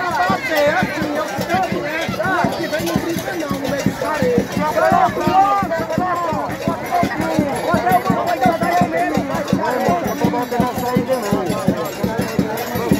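A crowd of young men shout and cheer loudly close by.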